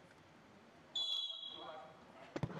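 A referee's whistle blows once, short and shrill.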